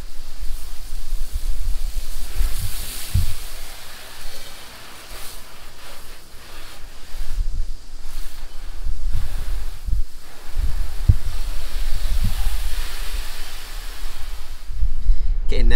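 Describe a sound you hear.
A pressure washer sprays water, hissing against a car's side.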